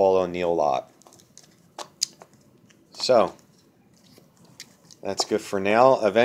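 Plastic card sleeves click and rustle in a hand.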